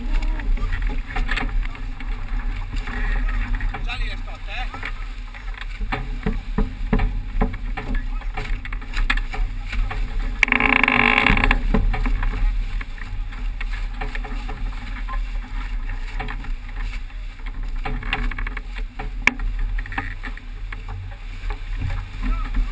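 Waves splash and rush against a sailing boat's hull.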